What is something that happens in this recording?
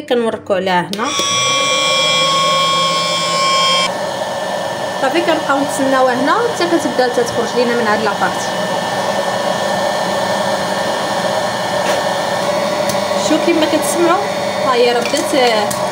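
A popcorn machine whirs and blows steadily.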